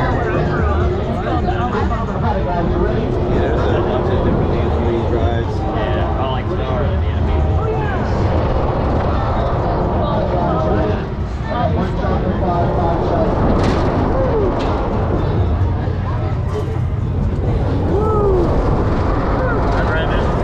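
Wind rushes loudly past as a spinning fairground ride whirls around.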